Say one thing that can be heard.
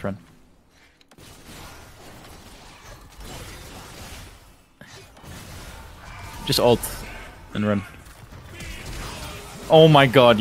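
Game combat sound effects clash and whoosh.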